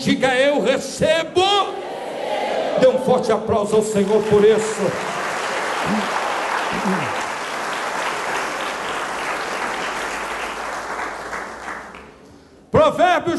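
A man preaches with animation into a microphone, his voice loud through loudspeakers.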